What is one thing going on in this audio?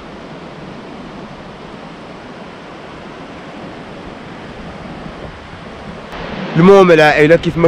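Waves wash softly onto a beach.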